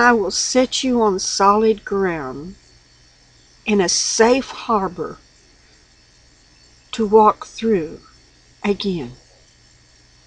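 An elderly woman speaks calmly and slowly, close to a microphone, with long pauses.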